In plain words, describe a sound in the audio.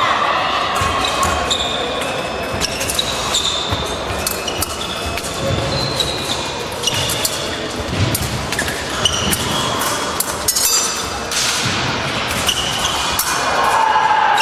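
Blades clink and clash together.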